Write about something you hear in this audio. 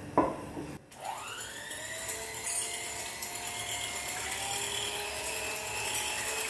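An electric hand mixer whirs in a bowl.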